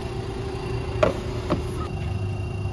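A charging plug clunks into its holder.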